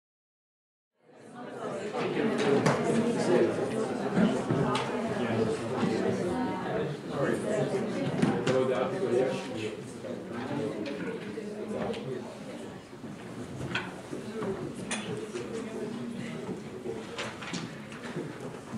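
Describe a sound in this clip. A young woman speaks to an audience in a room with some echo.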